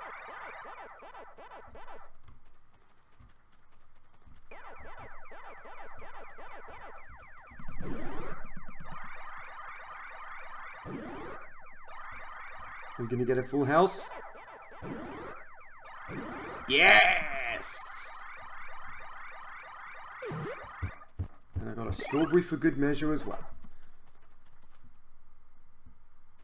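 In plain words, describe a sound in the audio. Upbeat electronic game music plays with chirping blips.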